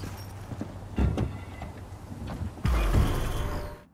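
A car door thuds shut.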